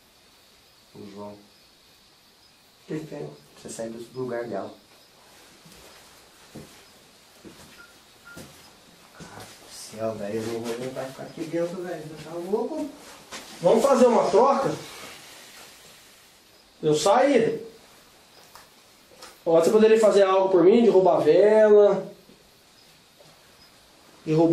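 Men speak quietly nearby, in short bursts with pauses.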